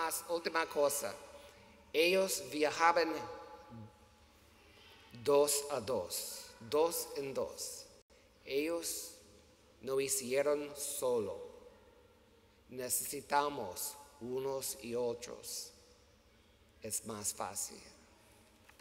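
An older man preaches with animation through a microphone in a large echoing hall.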